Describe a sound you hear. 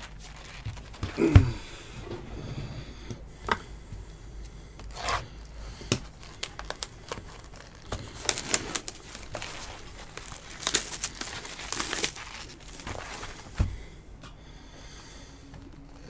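Glossy cardboard packaging rustles and crinkles close by.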